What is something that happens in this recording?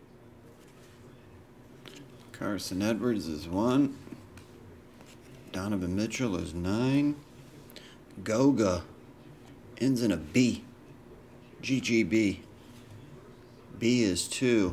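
Trading cards slide and rustle against each other in hands.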